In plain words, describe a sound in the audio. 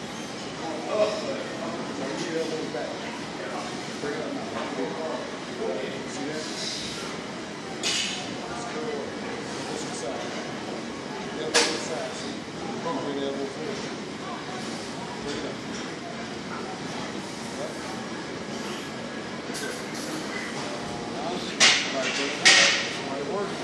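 Dumbbells clink and knock.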